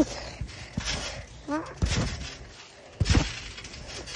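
A young girl falls onto a trampoline with a thud.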